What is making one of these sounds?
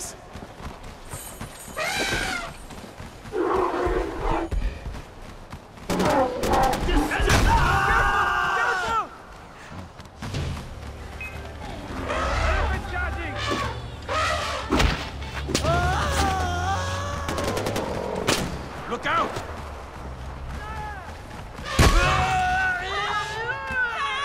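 An elephant stomps heavily along a path.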